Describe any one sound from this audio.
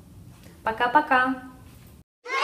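A young woman speaks briefly and cheerfully close to the microphone.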